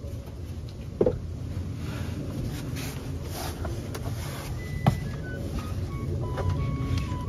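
Knees and hands shuffle and thump on a straw mat.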